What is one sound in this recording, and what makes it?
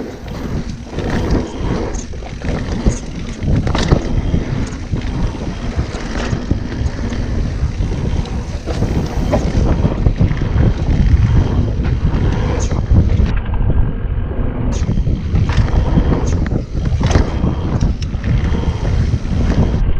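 A bicycle's frame and chain clatter over bumps.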